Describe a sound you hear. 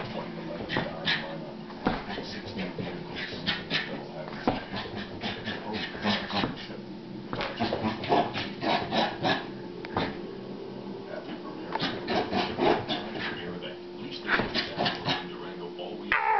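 A small dog barks excitedly.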